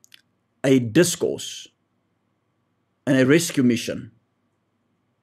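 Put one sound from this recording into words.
A young man speaks calmly and close to a microphone, in two short bursts.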